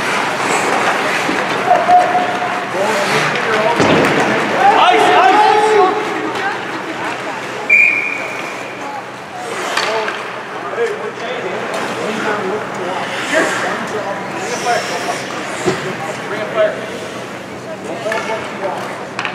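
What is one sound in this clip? A crowd murmurs and calls out in a large echoing rink.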